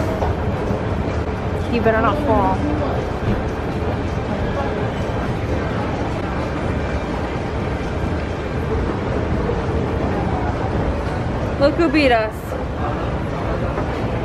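An escalator hums and rumbles steadily.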